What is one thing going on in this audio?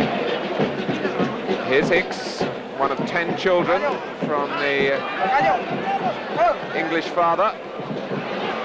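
A crowd chants loudly in the stands.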